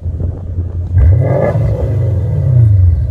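A car engine starts with a roar.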